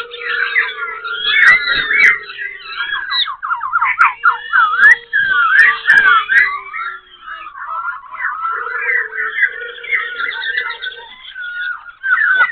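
A silver-eared laughingthrush sings a rich, varied song of whistles and chattering phrases.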